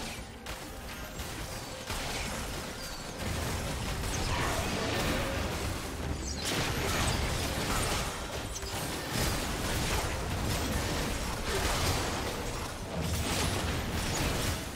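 Game spell effects and attacks clash and crackle during a battle.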